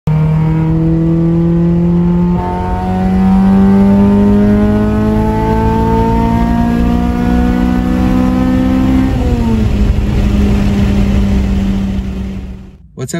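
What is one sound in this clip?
A car engine revs up steadily, its pitch dropping briefly at each gear change.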